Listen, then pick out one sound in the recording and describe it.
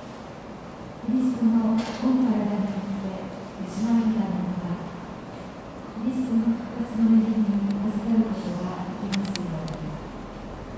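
A man chants a prayer in a large echoing hall.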